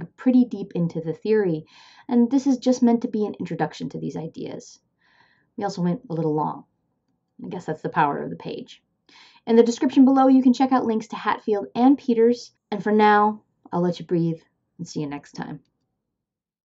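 A woman talks with animation, close to a microphone.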